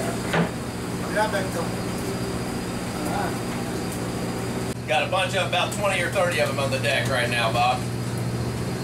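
Men talk nearby, some calling out loudly.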